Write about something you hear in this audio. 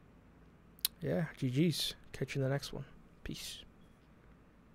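A young man speaks briefly and casually into a close microphone.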